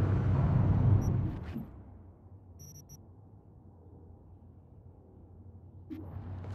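Soft electronic menu blips sound as items are selected.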